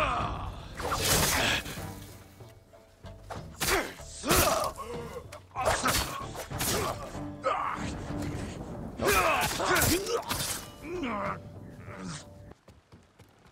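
Swords clash and strike in a fierce fight.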